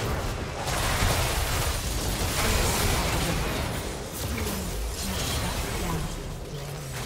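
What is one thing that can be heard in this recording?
Game spell effects crash and whoosh in a busy fight.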